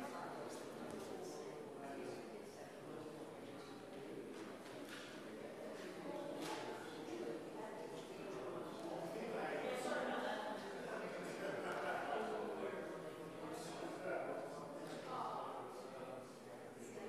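Two women talk quietly to each other in a large echoing room.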